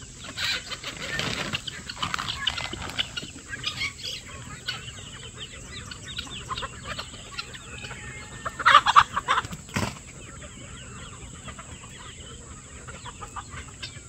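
A large flock of chickens clucks and chatters nearby, outdoors.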